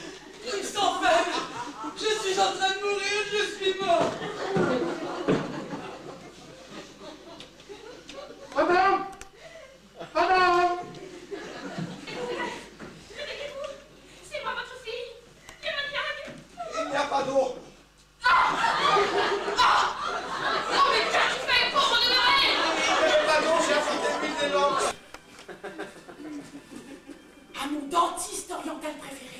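Two women speak with animation, heard from a distance in a large room.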